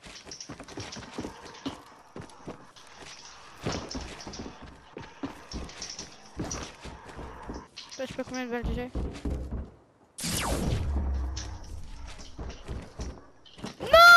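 Wooden walls and ramps snap into place in quick succession.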